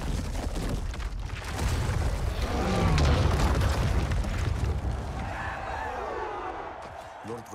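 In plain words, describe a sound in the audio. A huge stone pillar crashes down and breaks apart with a deep rumble.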